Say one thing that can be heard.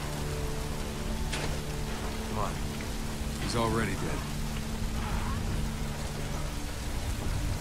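Fires crackle and roar nearby.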